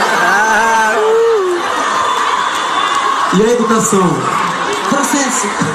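A large crowd sings along loudly and close by.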